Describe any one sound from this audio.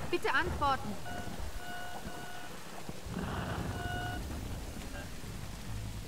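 A walkie-talkie crackles and beeps.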